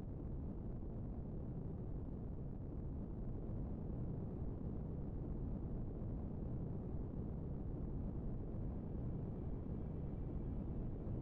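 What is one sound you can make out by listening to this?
An aircraft engine drones low and steadily.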